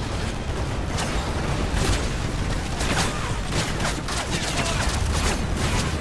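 Gunfire crackles and bursts in rapid shots.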